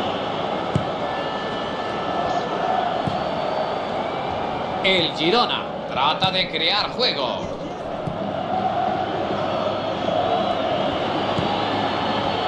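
A large stadium crowd roars steadily in the background.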